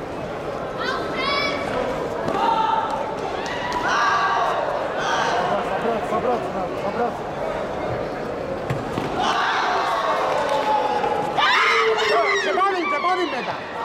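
Young female karate fighters give sharp shouts as they attack.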